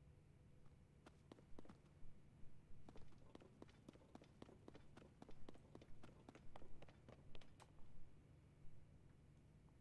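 Footsteps patter quickly over stone.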